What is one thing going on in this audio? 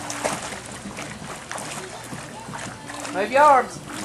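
A young child kicks and splashes while swimming in a pool.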